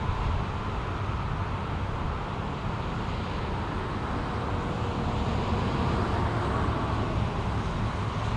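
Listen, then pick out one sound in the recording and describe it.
A large truck engine rumbles steadily nearby.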